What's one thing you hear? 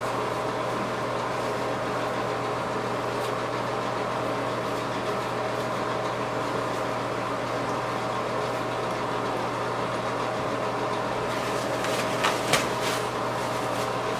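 A cloth rubs and scrubs against a shoe.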